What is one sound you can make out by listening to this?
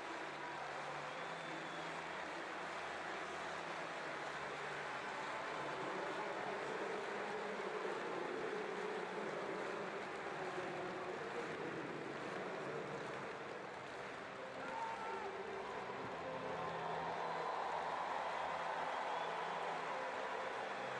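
A large stadium crowd murmurs and cheers steadily all around.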